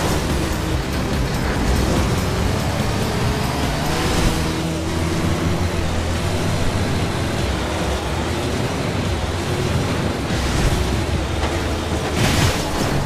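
A heavy truck engine roars steadily at speed.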